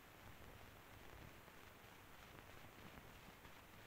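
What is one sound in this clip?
Paper rustles softly as pages are handled.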